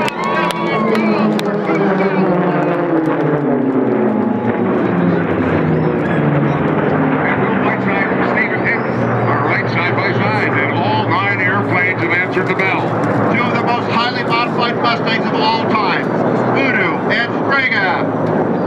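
Jet planes roar overhead, their engine pitch sliding lower as they pass.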